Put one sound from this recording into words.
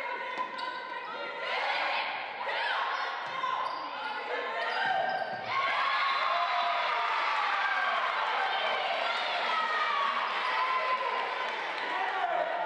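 A volleyball thuds as players hit it.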